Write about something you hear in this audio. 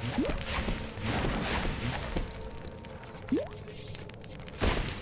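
Coins jingle in a game.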